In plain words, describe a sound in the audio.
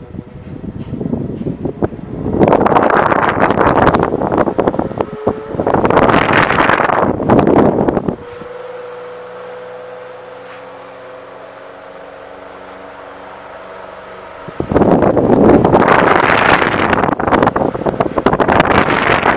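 Air from a fan rushes loudly past the microphone in strong gusts.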